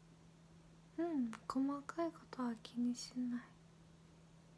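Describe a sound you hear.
A young woman speaks softly and closely into a microphone.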